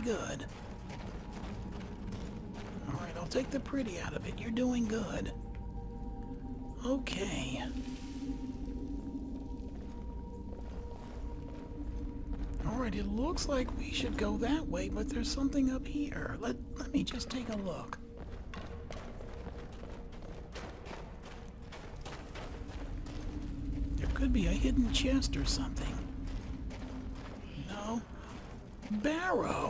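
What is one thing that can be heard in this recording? Footsteps crunch on rough stone and gravel.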